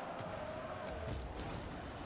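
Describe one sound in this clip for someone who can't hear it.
A rocket boost roars.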